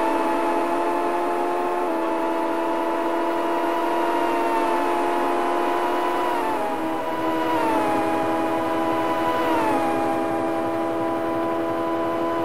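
A video game motorbike engine drones at a high, buzzing pitch, shifting its tone as it changes gear.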